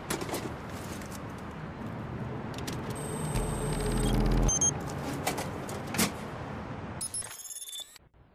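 Small clicks and taps come from fiddling with a metal electrical box.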